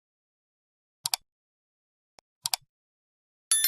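A mouse button clicks twice.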